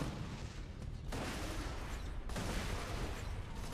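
An explosion bursts.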